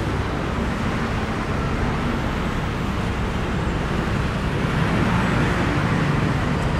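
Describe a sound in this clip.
Traffic rumbles steadily along a busy city street.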